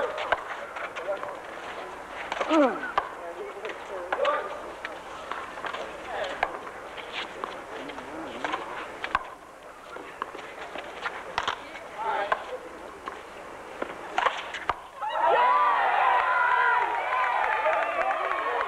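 A crowd of spectators nearby chatters and calls out.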